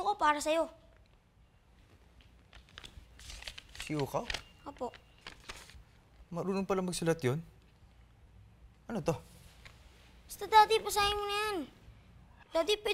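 A young boy speaks in a high voice, close by.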